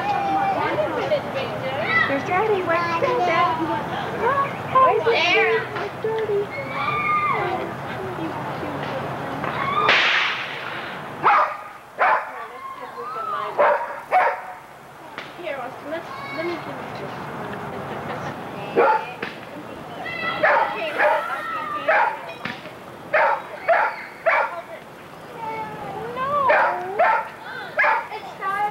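A young child babbles and squeals.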